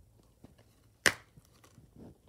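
A plastic disc case clacks open.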